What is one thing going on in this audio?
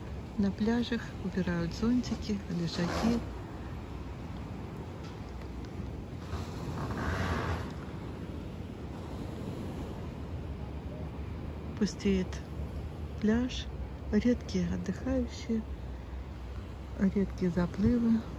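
Small waves wash gently onto a pebble shore.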